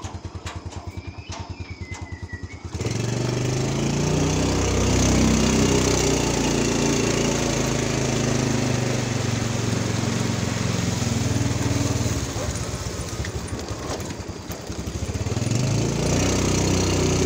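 A motorbike engine idles with a steady putter, then revs up and runs as the bike rides off.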